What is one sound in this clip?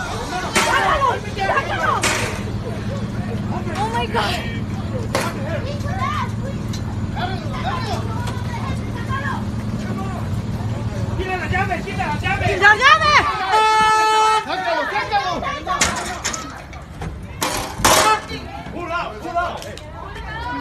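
Several men shout excitedly outdoors.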